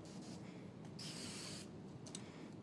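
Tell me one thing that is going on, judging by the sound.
A spray bottle squirts water in short hisses.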